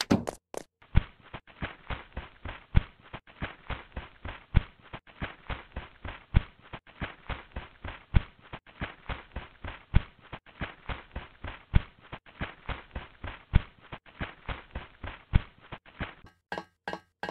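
Footsteps patter quickly and evenly on grass.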